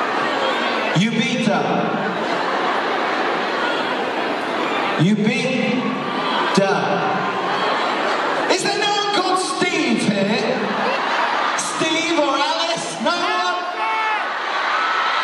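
A young man speaks animatedly into a microphone, heard through loudspeakers in a large echoing hall.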